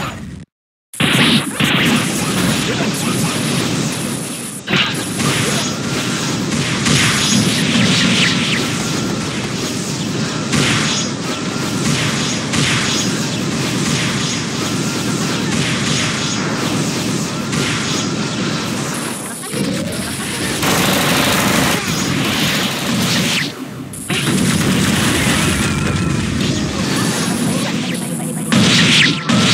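Rapid video game hits and blasts crash in a dense stream.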